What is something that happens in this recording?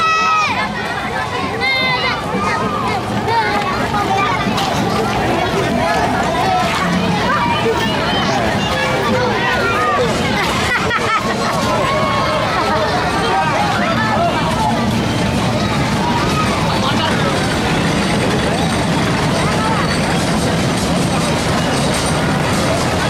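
A crowd of children and adults chatter and shout loudly outdoors.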